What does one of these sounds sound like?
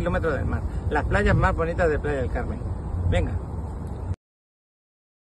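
A man speaks with animation into a microphone outdoors.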